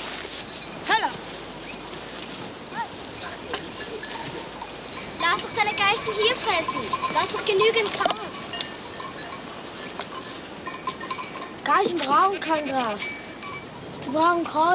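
Goats bleat nearby, outdoors.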